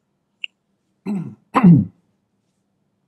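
A man coughs into a microphone.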